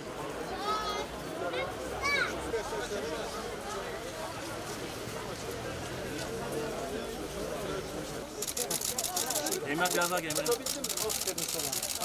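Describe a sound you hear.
A crowd of men and women chatters close by outdoors.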